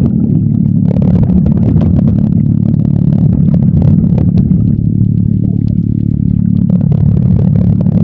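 Water rumbles and sloshes, heard muffled underwater.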